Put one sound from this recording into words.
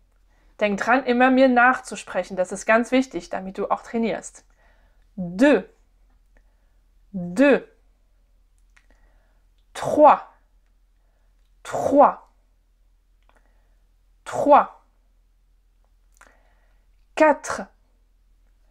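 A young woman speaks calmly and clearly into a close microphone, pausing between short words.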